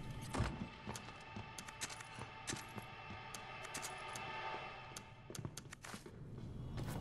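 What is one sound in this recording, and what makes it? Short electronic clicks tick one after another.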